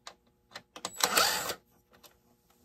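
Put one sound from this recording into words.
A cordless impact driver whirs.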